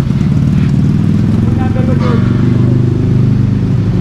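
A motorcycle engine rumbles at low speed nearby.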